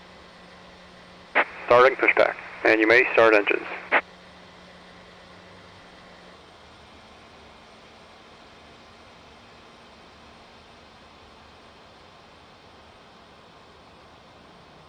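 A small tow tractor engine hums steadily.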